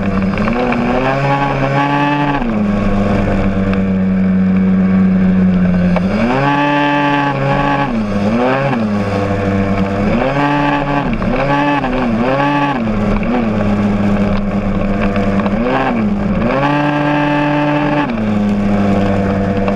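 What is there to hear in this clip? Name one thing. A motorcycle engine hums close by, revving up and easing off as it rides.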